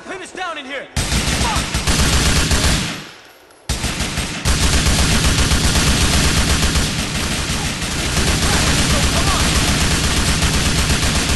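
Automatic rifles fire rapid bursts that echo in a tunnel.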